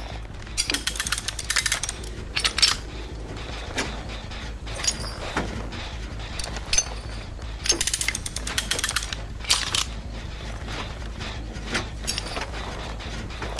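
A metal trap clanks and rattles as it is being set.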